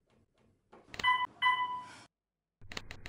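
An elevator chime dings twice.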